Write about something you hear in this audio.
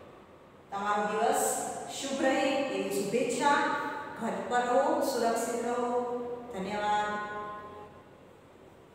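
A young woman speaks clearly and calmly, close by.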